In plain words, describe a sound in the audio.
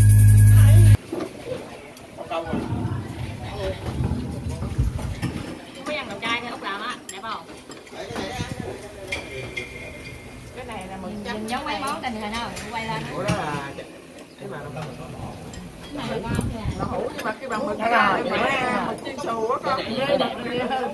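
Several women chat and laugh casually nearby.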